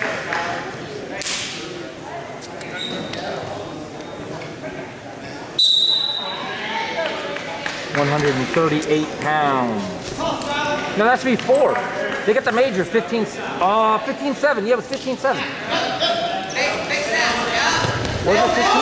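Spectators and coaches shout and cheer loudly in a large echoing gym.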